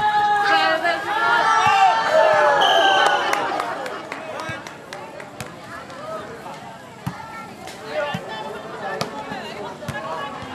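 A ball is struck with sharp slaps.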